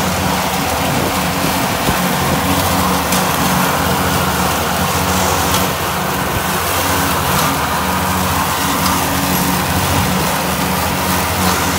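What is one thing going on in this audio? A tractor engine hums steadily close by.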